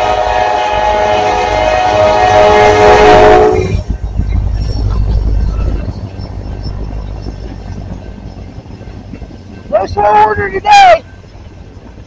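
A locomotive horn blasts loudly close by.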